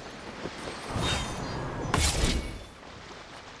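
Sword slashes whoosh and clang.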